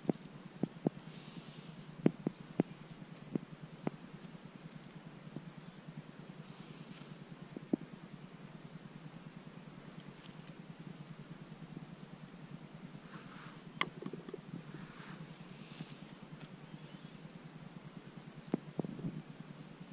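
A knife cuts through a mushroom stem with soft snaps.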